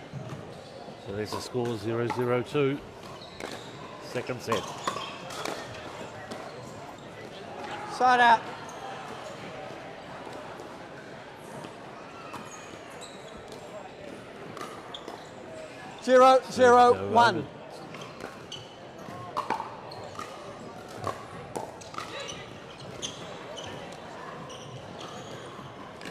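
Paddles strike a plastic ball with sharp pops in a large echoing hall.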